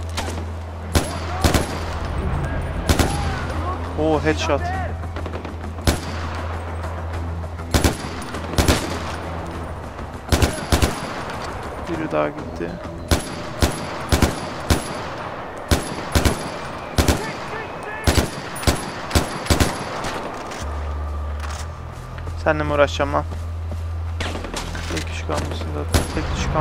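Rifle shots crack in quick single bursts.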